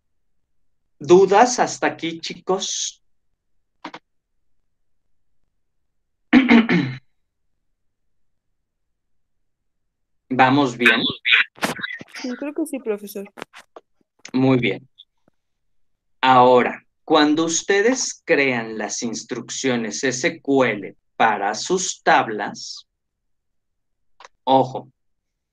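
A man talks calmly through an online call.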